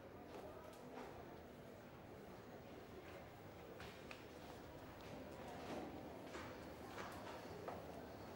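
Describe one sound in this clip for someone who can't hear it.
Footsteps climb stairs.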